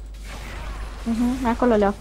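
Magic blasts and clashes ring out in a fantasy battle.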